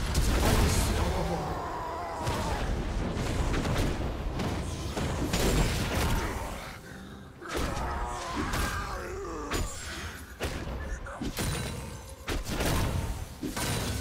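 Spell and weapon effects crackle and burst in a video game fight.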